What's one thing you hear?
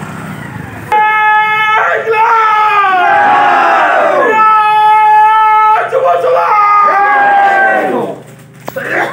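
A group of men shout slogans loudly in unison outdoors.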